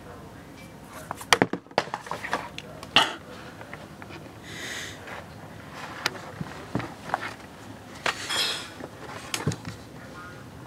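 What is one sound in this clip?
Hands rub and knock against the recording device up close.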